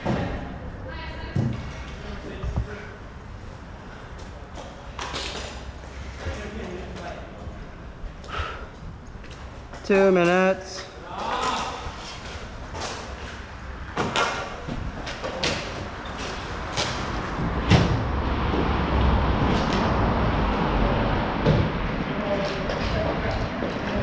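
Skate wheels roll and rumble across a hard court.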